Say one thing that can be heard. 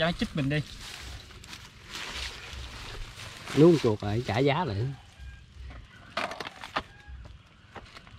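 Dry grass rustles and crackles.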